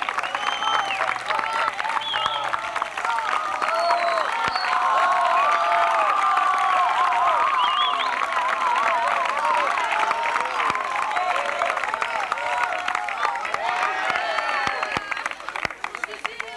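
A crowd of young people shouts and cheers loudly outdoors.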